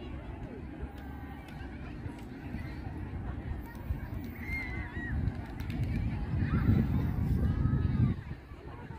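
A crowd of people chatter outdoors in the distance.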